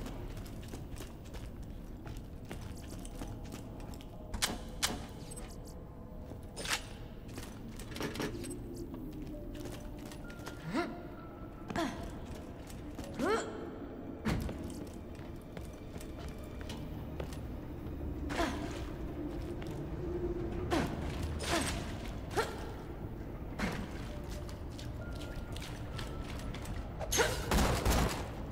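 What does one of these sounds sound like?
Footsteps thud along a hard floor.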